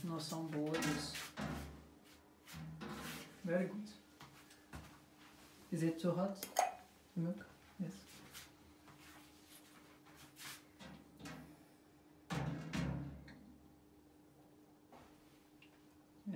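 Metal pans clink and scrape.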